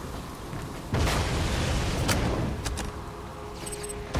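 A metal chest creaks open.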